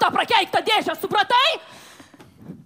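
A young woman sings loudly through a headset microphone in a large hall.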